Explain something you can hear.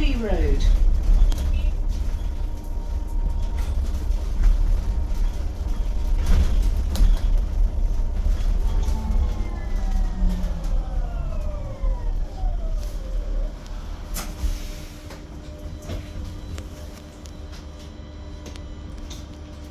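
A bus engine rumbles low and steady, growing quieter toward the end.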